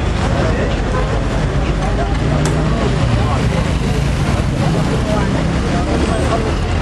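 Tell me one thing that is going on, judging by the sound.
A crowd of men talk and shout over each other outdoors.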